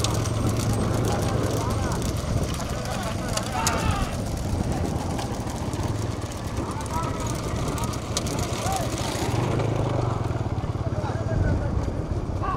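A motorbike engine drones nearby.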